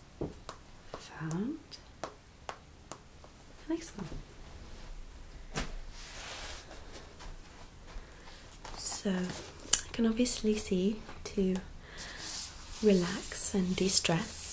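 A young woman talks calmly and warmly, close to a microphone.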